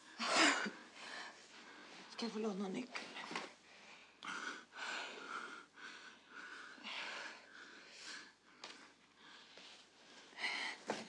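A young woman sobs and sniffles.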